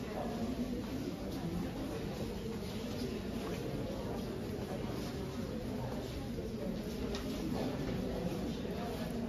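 A crowd of adults murmurs and chats indoors.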